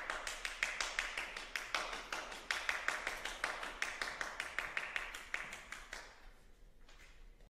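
An audience applauds with lively clapping in a large echoing hall, then the clapping thins out.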